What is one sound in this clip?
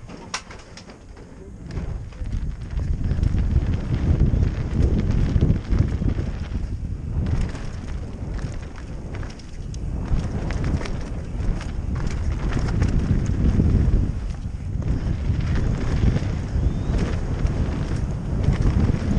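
Bike tyres rattle and crunch over loose rocky dirt at speed.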